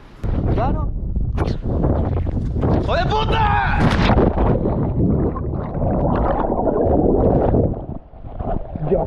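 Bubbles rush and roar underwater.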